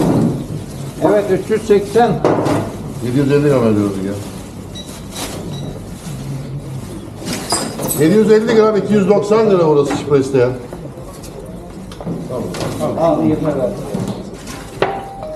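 A middle-aged man talks loudly and with animation close by.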